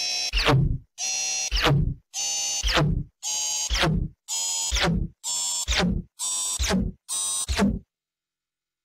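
A computer plays an error sound over and over, each time a buzzing tone followed by a quick falling glide.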